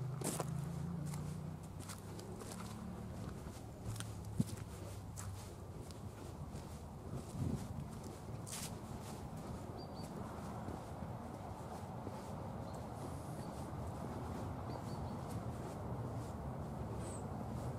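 Footsteps crunch on leaves and paving stones outdoors.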